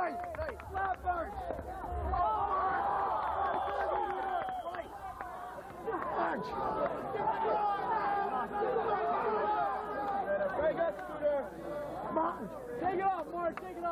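A large crowd of men and women chatters and calls out outdoors.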